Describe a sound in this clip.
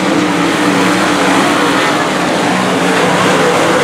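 A race car engine roars close by as it passes.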